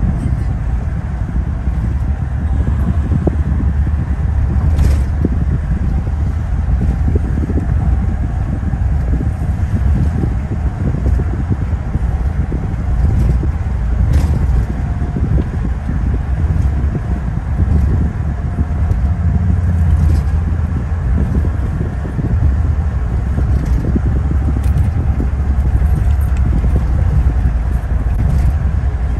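A car drives along a highway with a steady low rumble of road noise.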